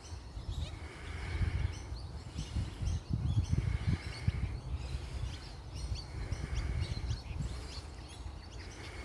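Birds chatter with short, raspy calls nearby.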